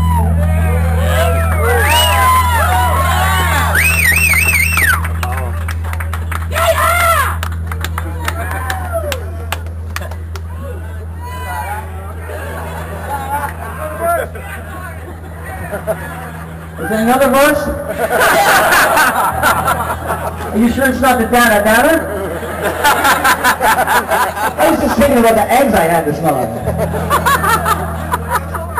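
A double-neck electric guitar sustains a low note through an amplifier.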